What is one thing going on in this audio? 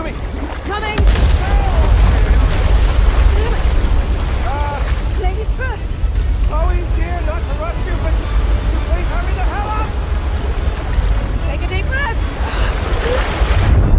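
Water rushes and churns as it floods a chamber.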